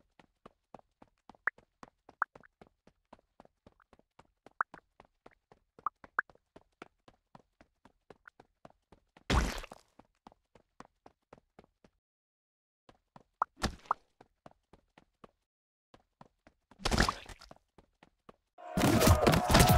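Soft game pops tick in quick succession.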